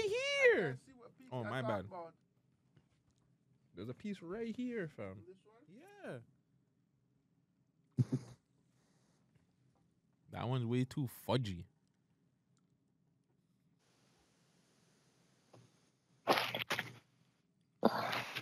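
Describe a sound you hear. A man speaks expressively into a close microphone, in short bursts with pauses.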